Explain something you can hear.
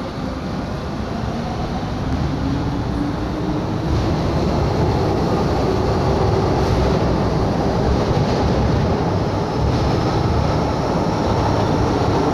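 A train rumbles out of an echoing underground station, growing louder.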